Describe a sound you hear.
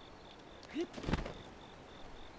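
A heavy thud of a blow lands in a game fight.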